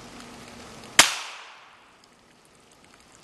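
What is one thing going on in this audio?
A shotgun fires once, loudly, and echoes through the trees.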